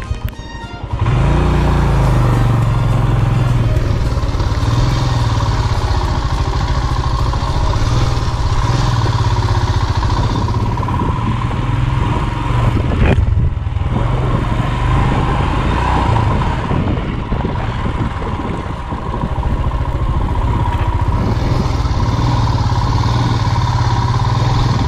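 A motorcycle engine rumbles steadily while riding over a dirt track.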